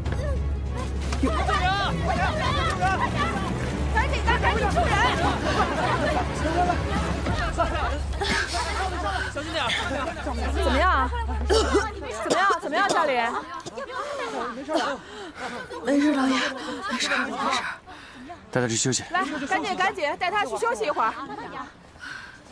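Several young men and women shout urgently nearby.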